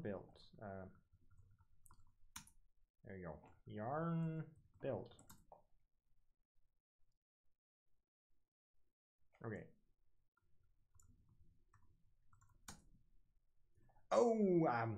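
A young man talks calmly into a microphone, in short bursts with pauses.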